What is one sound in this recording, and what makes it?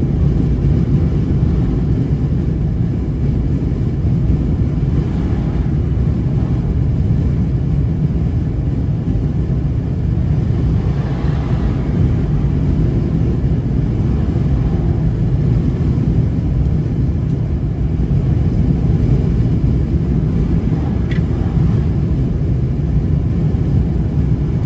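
A car's engine and tyres rumble steadily from inside the car.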